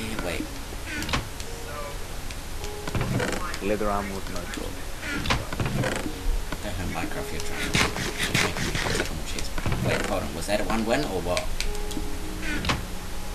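A wooden chest creaks open and bangs shut.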